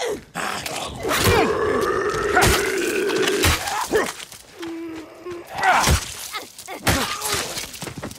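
Heavy blows thud as a club strikes an attacker.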